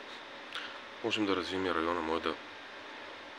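A man speaks briefly and calmly, close to the microphone.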